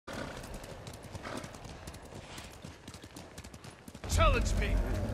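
A horse's hooves splash through shallow water.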